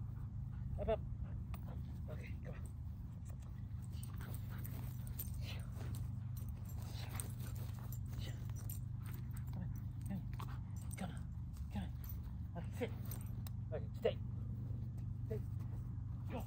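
A dog growls while tugging on a toy.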